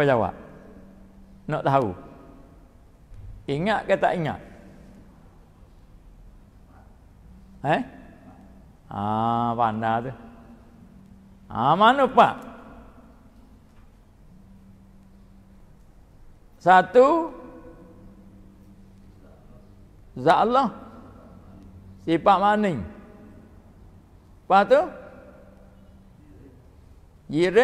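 An elderly man preaches into a microphone in short, drawn-out phrases, heard over a loudspeaker with some echo.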